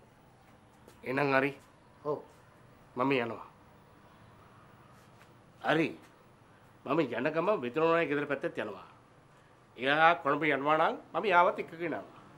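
A middle-aged man speaks close by in short bursts, then more insistently.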